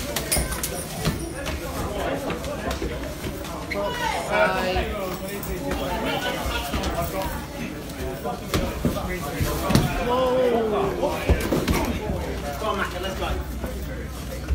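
Several men shout angrily close by.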